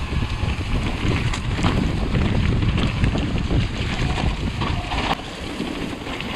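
Bicycle tyres rumble and rattle over a rough, muddy trail.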